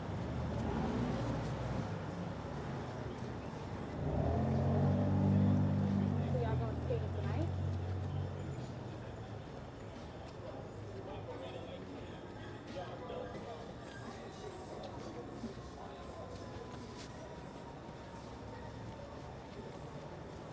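City traffic rumbles steadily in the distance.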